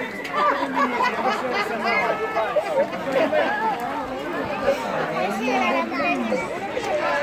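A crowd of children and adults chatter and call out excitedly outdoors.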